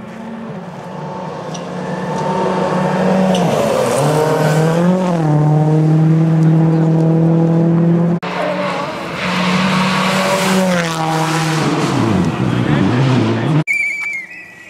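A rally car engine roars closer at high revs and speeds past.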